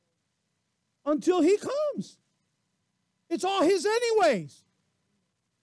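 A middle-aged man speaks calmly through a microphone, with pauses between phrases.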